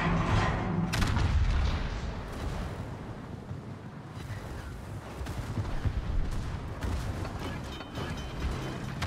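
Water rushes along a ship's hull with a low, steady rumble.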